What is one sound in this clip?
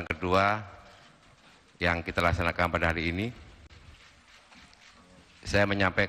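A middle-aged man speaks into a microphone in short, measured phrases, amplified over a loudspeaker.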